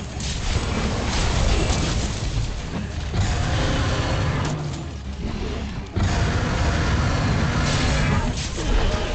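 A large beast roars and stomps heavily.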